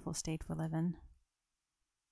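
A young woman sings softly into a microphone.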